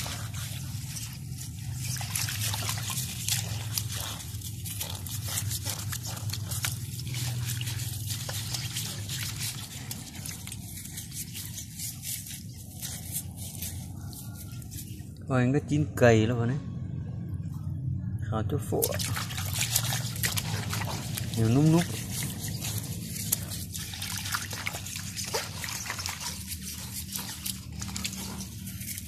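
Water splashes and sloshes in a metal basin as a hand scrubs.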